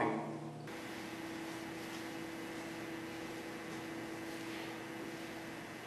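Something scrapes across a wet glass surface.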